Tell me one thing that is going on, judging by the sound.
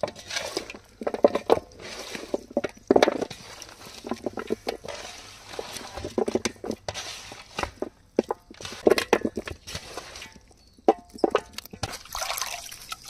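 Hands squish and rub wet chicken feet.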